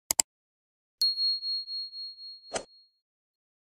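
A small bell chimes and fades.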